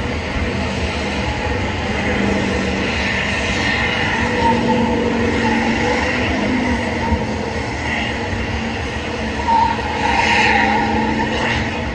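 A car engine roars and revs in the distance.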